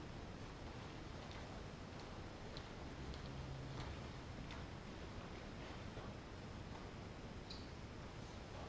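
Footsteps shuffle softly across a hard floor.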